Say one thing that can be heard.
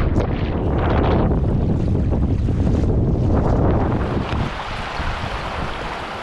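Feet splash through shallow river water.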